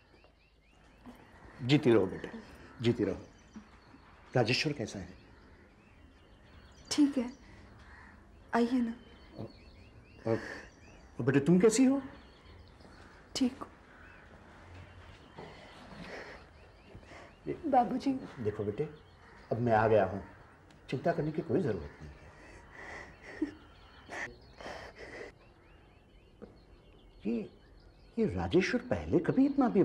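A middle-aged woman speaks softly, close by.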